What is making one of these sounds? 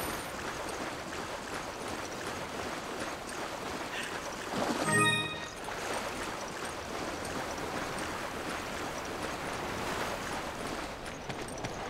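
Water splashes and churns as someone wades through it.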